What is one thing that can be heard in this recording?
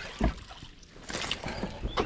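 A fish splashes at the water's surface.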